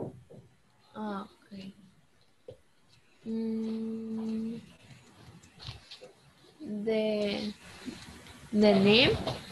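A young girl speaks slowly through an online call, drawing out her words.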